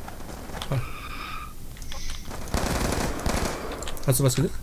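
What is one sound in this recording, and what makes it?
Rapid gunfire rattles out in short bursts.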